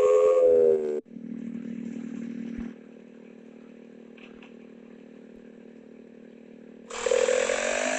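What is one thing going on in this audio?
A motorbike engine idles with a low steady hum.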